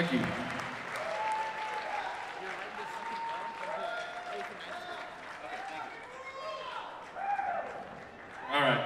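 A man speaks through a loudspeaker in a large echoing hall.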